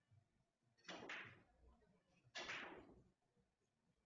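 Billiard balls knock against each other and the cushions.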